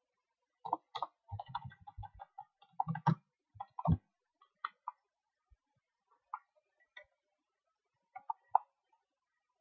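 Game sound effects click and clatter in short bursts.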